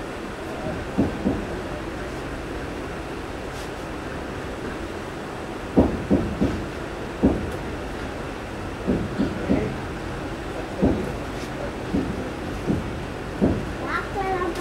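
Train wheels clatter and knock over rail joints.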